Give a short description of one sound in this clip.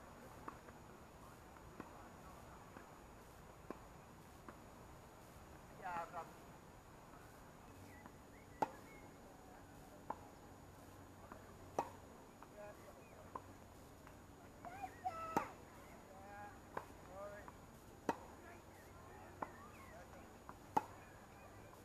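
Tennis balls are struck with rackets.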